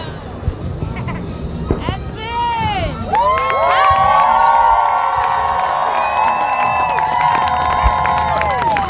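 Fireworks crackle and pop overhead.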